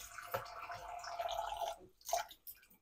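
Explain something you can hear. Tap water runs and splashes into a glass bowl.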